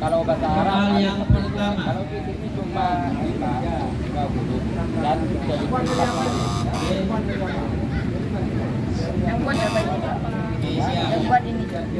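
Children chatter and murmur nearby.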